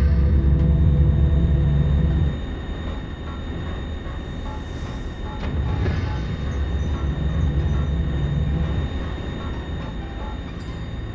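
Footsteps tread steadily over a hard floor.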